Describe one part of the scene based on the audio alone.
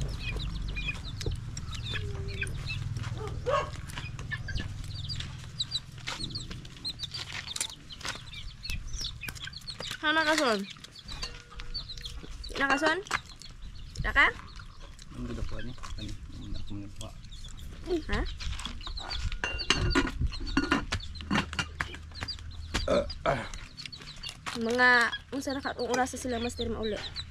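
Shells crack and clatter as hands break them apart.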